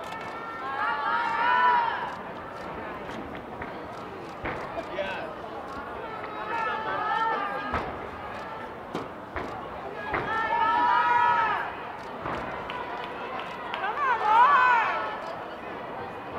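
Young girls shout and cheer loudly in a large echoing hall.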